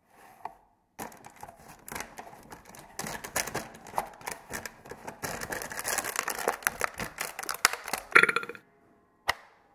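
A hollow plastic casing knocks and scrapes as it tumbles across a surface.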